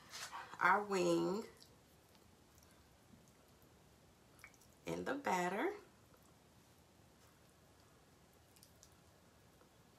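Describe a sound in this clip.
A hand squishes a piece of chicken in wet batter.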